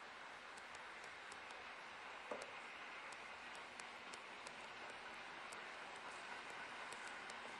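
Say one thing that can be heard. An electric train rolls steadily along the track.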